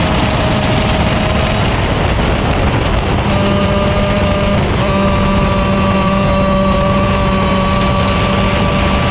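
A kart engine whines loudly up close, its pitch rising and falling.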